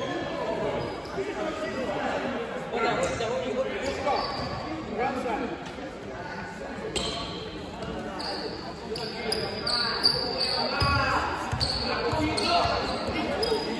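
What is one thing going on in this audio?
Young spectators talk and call out in a large echoing hall.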